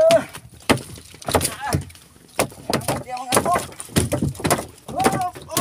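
A sailfish thrashes, its body thumping and slapping against a wooden boat deck.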